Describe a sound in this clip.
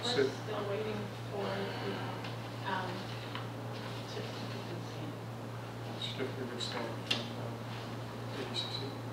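A man speaks calmly at a distance.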